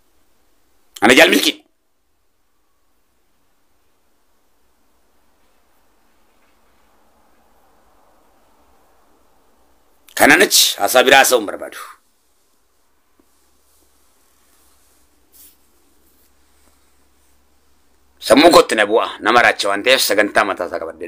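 A man speaks close to the microphone in short bursts, with long pauses between them.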